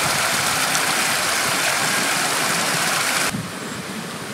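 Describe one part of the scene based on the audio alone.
A small stream rushes and splashes close by.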